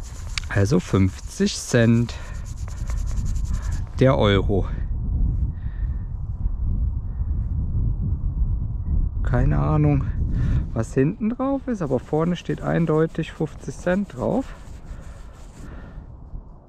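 A brush scrubs dirt off a potato.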